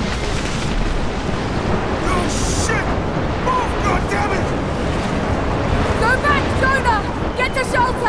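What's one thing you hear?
An avalanche rumbles deeply and roars.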